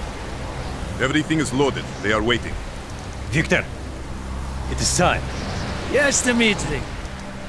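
A man speaks in a low, gruff voice close by.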